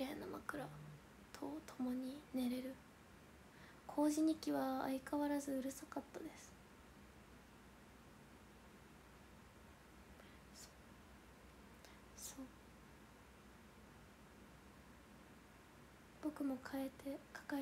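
A young woman talks casually and close to a microphone, with pauses.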